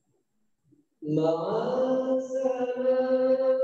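A man chants in a long, drawn-out voice through a microphone.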